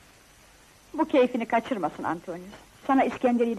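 A young woman speaks warmly and playfully nearby.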